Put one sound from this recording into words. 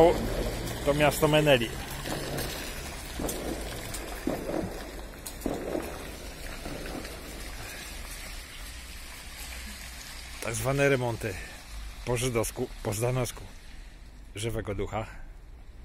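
A car rolls slowly through shallow muddy water, its tyres swishing.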